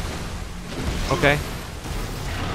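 A huge creature roars with a deep, growling voice.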